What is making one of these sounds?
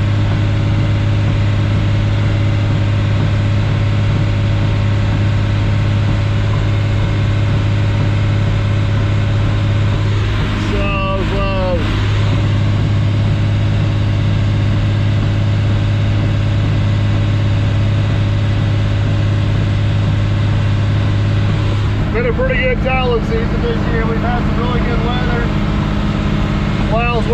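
A tractor engine drones steadily inside a cab.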